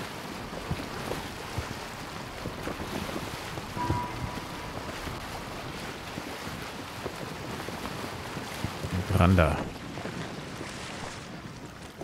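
Water splashes against a boat's hull.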